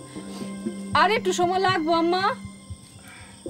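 A woman speaks in a startled voice.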